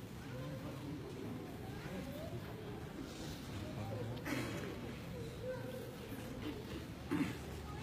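A large crowd of men sings together in a big echoing hall.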